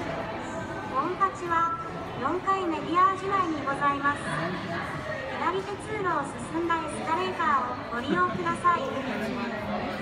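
A young woman speaks calmly and evenly nearby.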